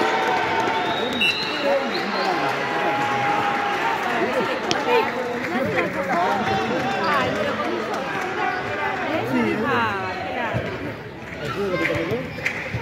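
A ball thumps off a player's foot.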